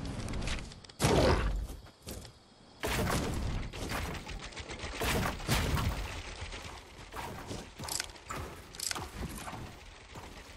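Building pieces snap into place with quick clattering bursts.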